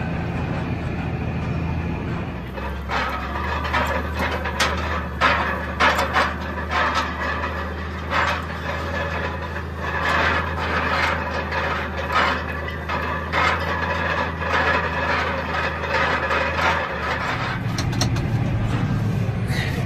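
A tractor engine hums steadily close by.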